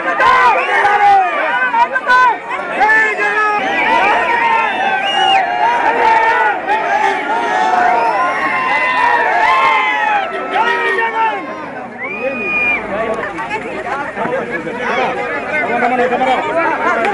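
A crowd of women chatter and call out excitedly all around, close by.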